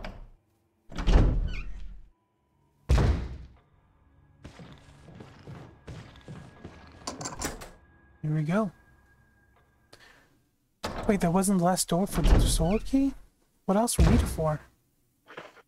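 A heavy wooden door thuds shut.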